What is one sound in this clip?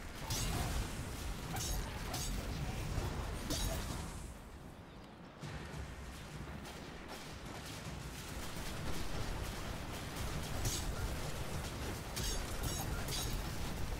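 A sword swooshes and clangs in combat.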